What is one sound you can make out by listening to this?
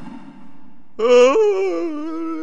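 A man cries out close by in a drawn-out, wavering wail.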